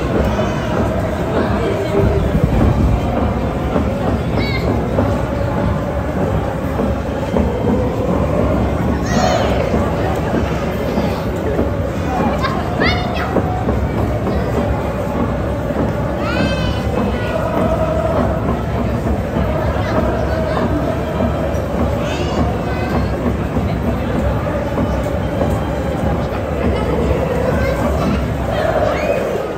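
A large stadium crowd chants and sings together in a steady rhythm, echoing in the open air.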